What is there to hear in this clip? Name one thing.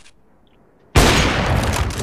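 A rifle fires a single loud, sharp shot.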